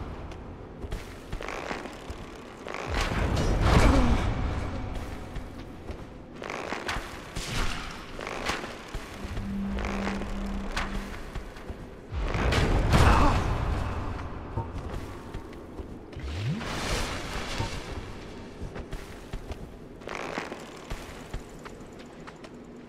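Metal blades clash and clang in a sword fight.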